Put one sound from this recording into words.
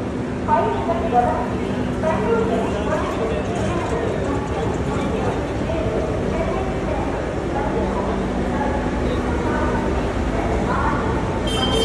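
A parked train hums steadily.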